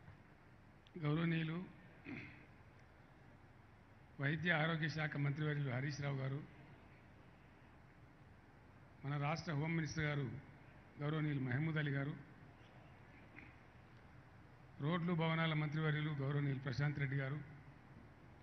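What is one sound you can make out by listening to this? An elderly man speaks slowly into a microphone over a loudspeaker, in bursts with pauses.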